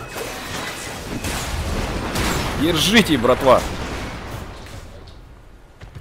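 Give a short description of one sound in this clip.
Large machines clash and crash in a fight.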